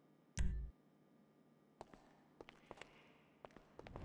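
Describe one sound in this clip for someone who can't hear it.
A lift button clicks.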